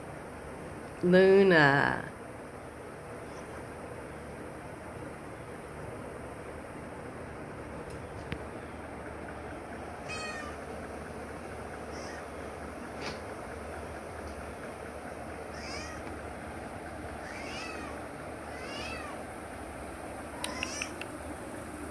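A cat meows loudly up close, then meows more softly several times.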